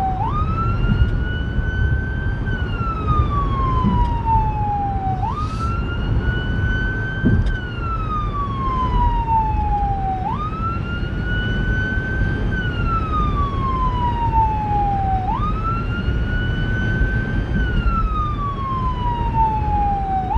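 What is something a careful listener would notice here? Tyres rumble steadily on a road inside a moving car.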